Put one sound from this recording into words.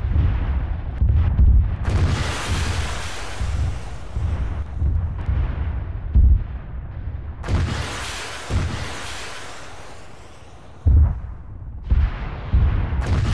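Explosions boom and rumble repeatedly.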